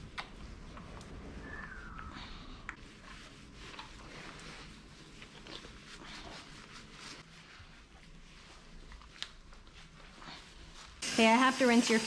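Hands rub and squish through wet, soapy fur.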